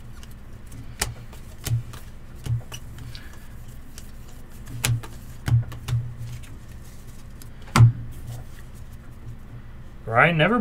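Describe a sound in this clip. Cardboard cards slide and tap against each other in hands.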